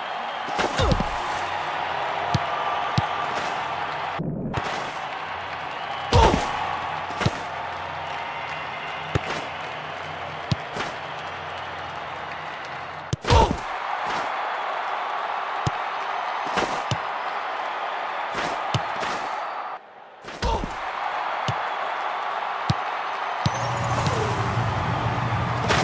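A ball is kicked with sharp thuds again and again.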